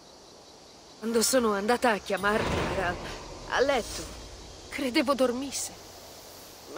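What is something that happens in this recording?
A young woman speaks with feeling.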